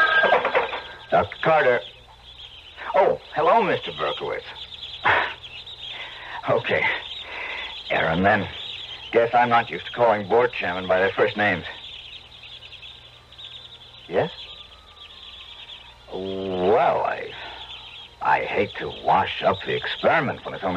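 A voice speaks through a small, tinny radio speaker.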